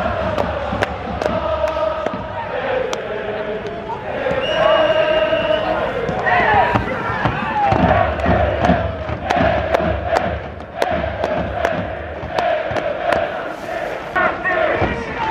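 Drums beat steadily in the crowd.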